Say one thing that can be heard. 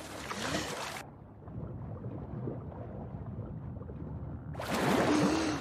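Muffled, low underwater sounds of a person swimming beneath the surface.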